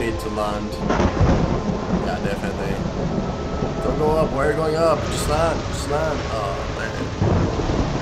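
Thunder rumbles loudly.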